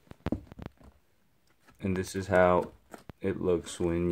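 Fingers fiddle with the leather laces of a shoe, rustling softly.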